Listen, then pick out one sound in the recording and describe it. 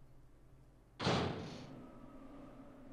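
A heavy metal door clanks open.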